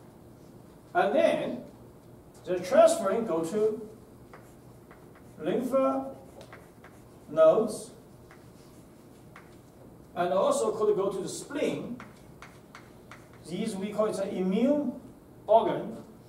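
A man speaks calmly, heard from across a room.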